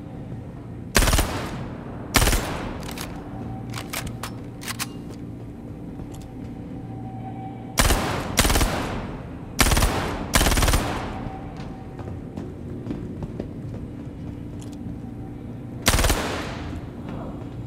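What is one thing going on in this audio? Gunshots fire in loud bursts and echo off hard walls.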